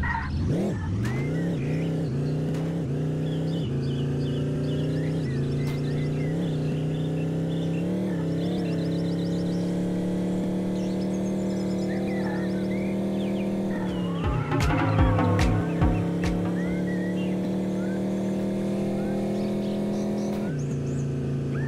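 A game van's engine hums steadily, rising and falling in pitch as it speeds up and slows.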